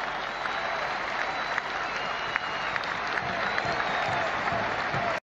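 A huge crowd cheers and shouts outdoors in a steady roar.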